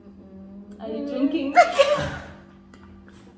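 Two young women laugh loudly together.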